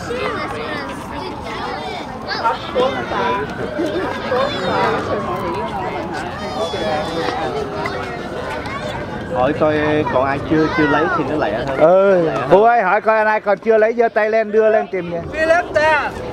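Many children chatter and call out together outdoors.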